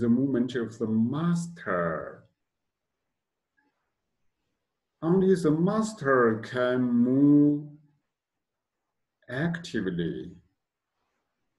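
A man speaks calmly and slowly, close to a microphone, with long pauses.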